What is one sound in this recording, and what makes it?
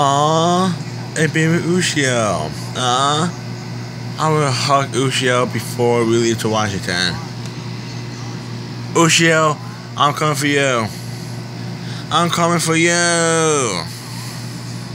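Voices and sounds play from a small tablet loudspeaker close by.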